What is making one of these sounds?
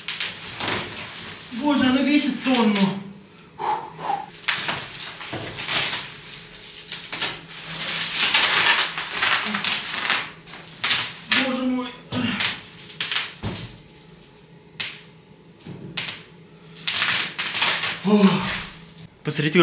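Plastic wrapping rustles and crinkles as a large panel is moved.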